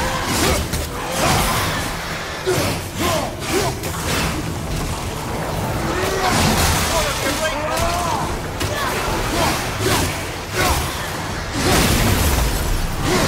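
Magic blasts crackle and roar.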